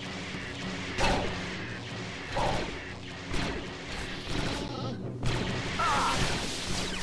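Blaster shots bang and crackle loudly.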